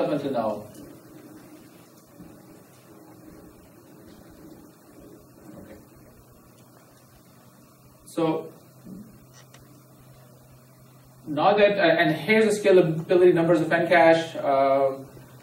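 A man speaks calmly into a microphone, presenting.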